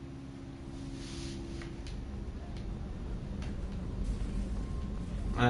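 Footsteps tread on a metal floor.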